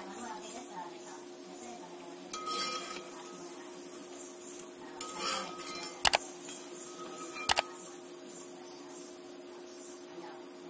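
Hot oil sizzles softly as fritters fry in a pan.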